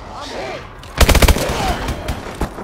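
An automatic rifle fires a short burst in a video game.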